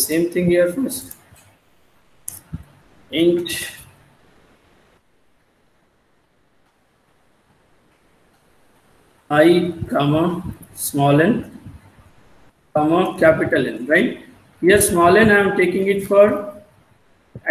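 A man explains calmly, heard through an online call microphone.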